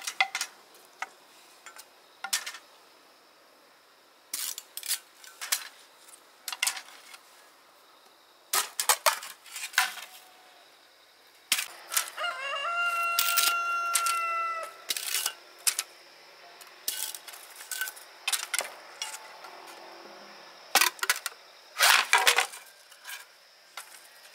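A machete chops into bamboo with sharp knocks.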